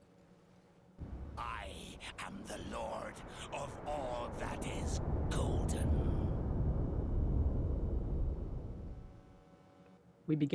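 A huge creature lets out a deep, rumbling roar that swells and then fades.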